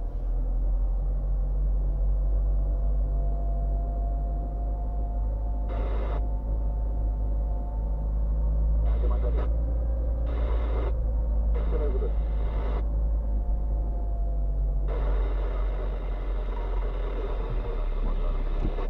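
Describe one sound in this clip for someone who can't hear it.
Tyres roll over pavement.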